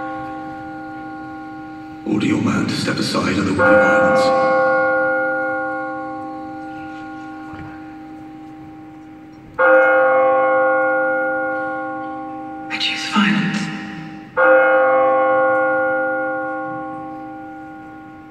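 An orchestra plays loud, swelling chords that ring out and slowly fade in a large echoing hall.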